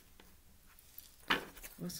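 Cards shuffle and rustle in a woman's hands.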